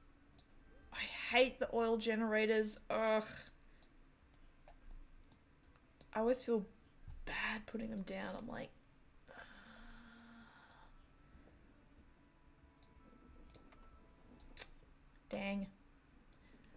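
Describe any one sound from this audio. A woman talks with animation close to a microphone, in short bursts.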